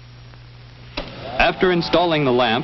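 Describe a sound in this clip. A switch clicks.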